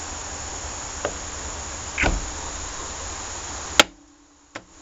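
Small metal parts click and tap against each other as they are handled.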